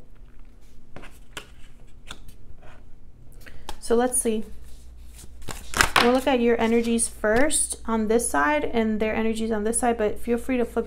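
Playing cards tap and slide on a tabletop.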